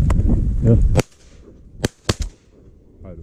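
A semi-automatic shotgun fires several shots outdoors.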